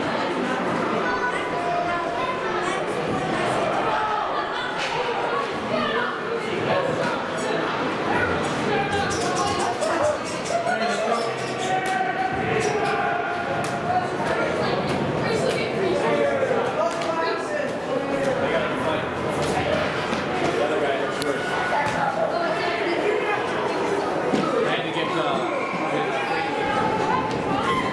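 A crowd of young players and adults call out and chatter in a large echoing hall.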